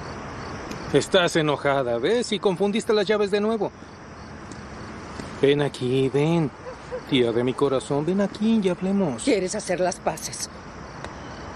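A young man calls out with urgency, close by.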